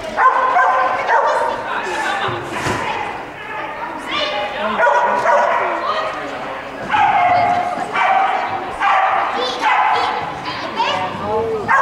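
A woman calls out commands loudly in a large echoing hall.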